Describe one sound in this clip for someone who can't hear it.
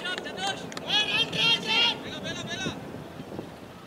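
A man shouts with excitement nearby, outdoors.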